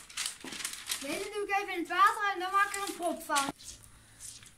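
A young boy speaks excitedly close by.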